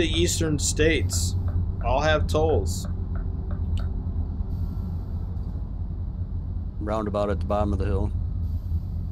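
A middle-aged man talks casually into a microphone.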